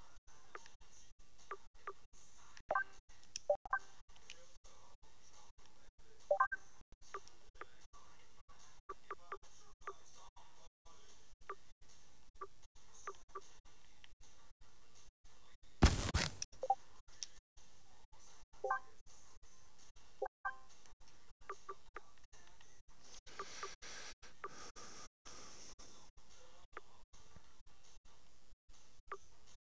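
Short soft menu blips sound as selections change.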